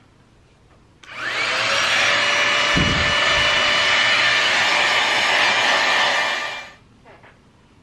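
A hair dryer blows with a loud steady whir.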